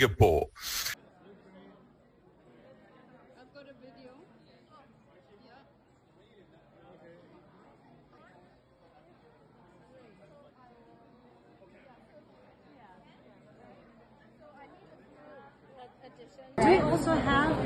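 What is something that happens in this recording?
A quiet crowd murmurs in the background indoors.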